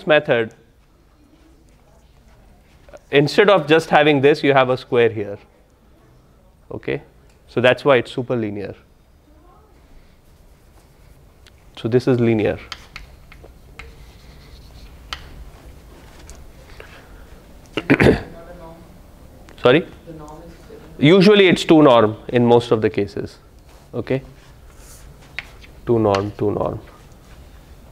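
A young man lectures in a large room, speaking in short bursts with pauses.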